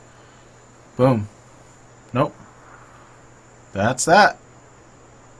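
A man speaks in short bursts into a close microphone.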